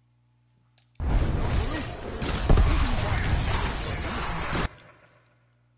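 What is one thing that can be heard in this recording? Loud game combat noise with weapon fire roars and crackles, then cuts off abruptly.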